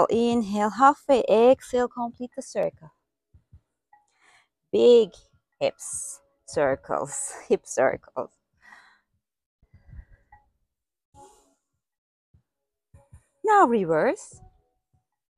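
A young woman speaks calmly and clearly into a close microphone, giving instructions.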